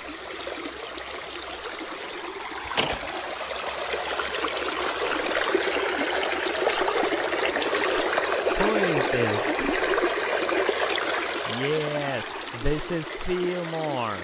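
A shallow stream babbles and splashes over rocks.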